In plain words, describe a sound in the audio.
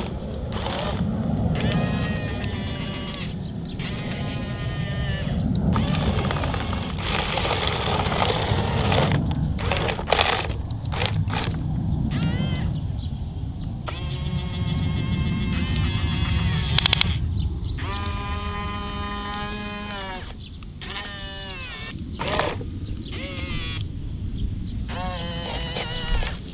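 A small electric motor whines in short bursts, rising and falling in pitch.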